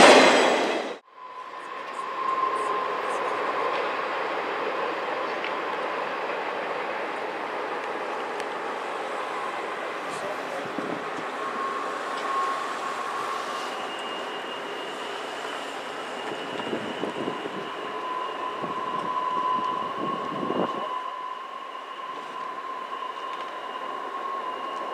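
A railroad crossing bell rings steadily.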